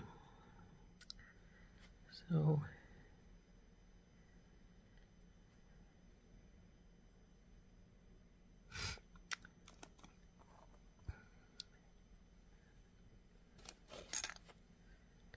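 Small wooden clothespins click and knock as they are handled.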